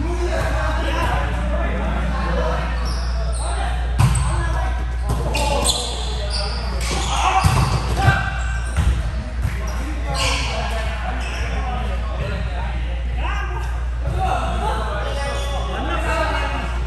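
Several men talk and call out to each other in a large echoing hall.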